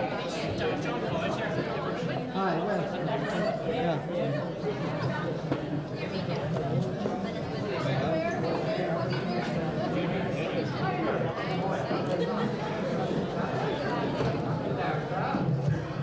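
A crowd of men and women chatter loudly all around in a busy, echoing room.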